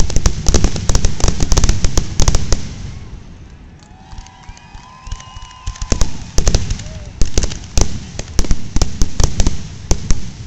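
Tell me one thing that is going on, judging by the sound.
Fireworks explode in a rapid barrage of bangs.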